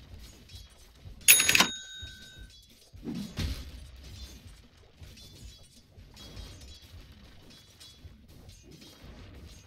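Weapons clash and strike in a fast fantasy battle.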